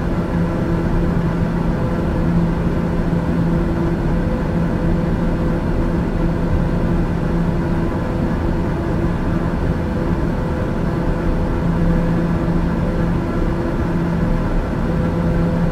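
An aircraft engine drones steadily inside a cabin.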